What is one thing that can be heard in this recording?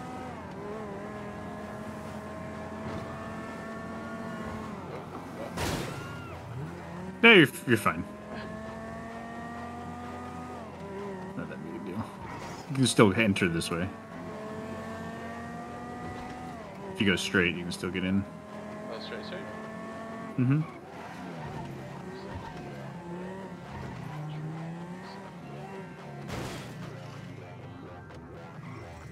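A car engine revs and shifts gears as the car speeds along.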